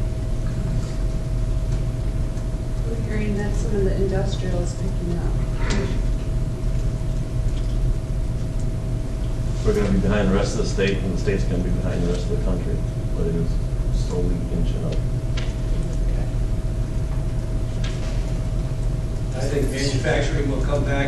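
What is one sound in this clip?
A middle-aged man speaks calmly to a room, slightly distant and echoing.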